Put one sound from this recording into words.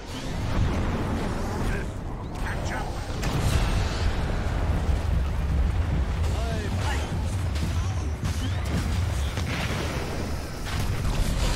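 Magic blasts and impacts burst from a video game.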